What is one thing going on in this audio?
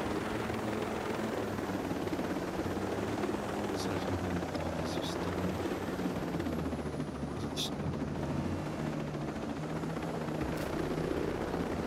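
A helicopter's rotor thumps and its engine roars steadily overhead.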